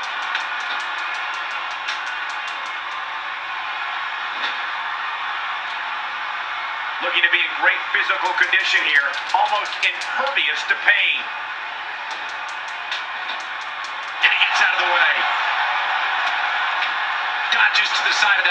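A crowd cheers and roars steadily in a large arena.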